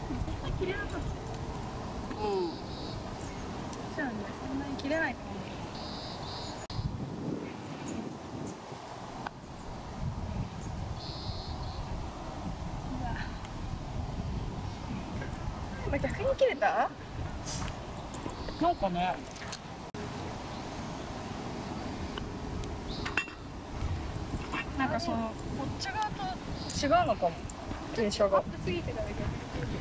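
Young women talk and laugh casually outdoors.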